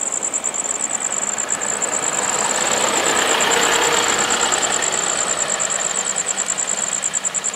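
A train rolls slowly along the tracks.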